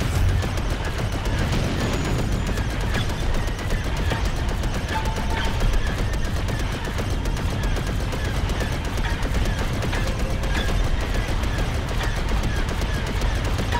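A spaceship engine roars steadily.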